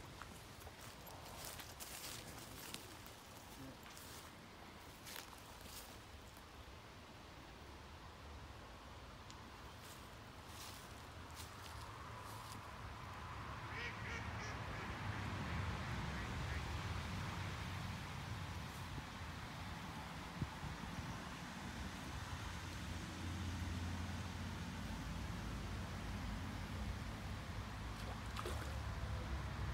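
Wind blows outdoors, rustling leaves and growing stronger.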